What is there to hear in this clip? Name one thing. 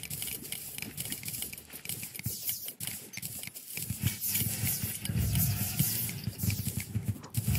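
Game pickaxe strikes chip rapidly at stone, over and over.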